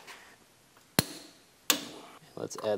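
A torque wrench clicks sharply.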